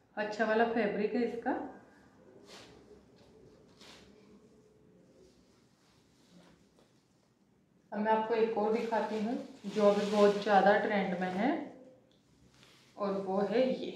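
Cloth rustles as it is handled.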